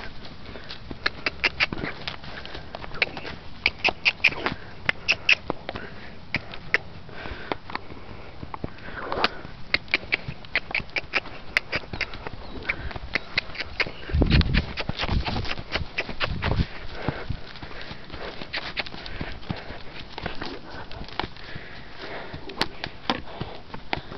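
A horse's hooves thud and shuffle on soft sand.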